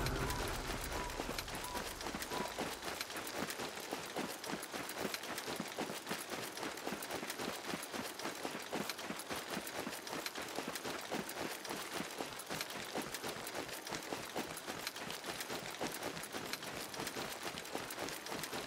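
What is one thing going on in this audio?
Quick footsteps run on stone paving.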